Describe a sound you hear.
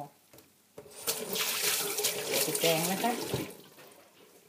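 Tap water runs and splashes into a metal sink.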